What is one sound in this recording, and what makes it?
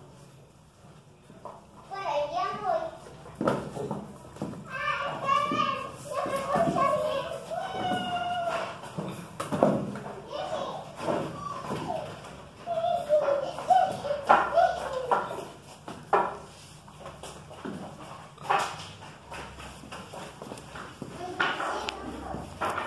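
Dog claws scrape and tap on a hard floor.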